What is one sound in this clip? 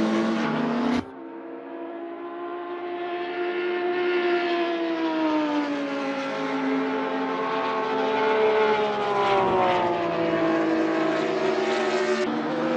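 Racing car engines drone as cars pass by, rising and falling in pitch.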